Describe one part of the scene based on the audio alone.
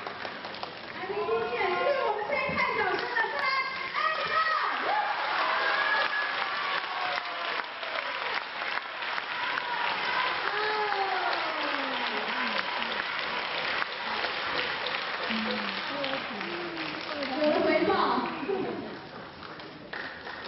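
A wind band plays a lively tune in a large echoing hall.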